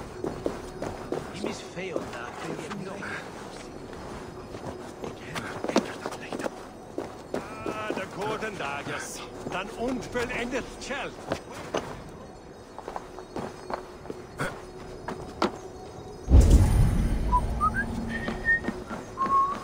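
Footsteps patter on stone and wooden planks.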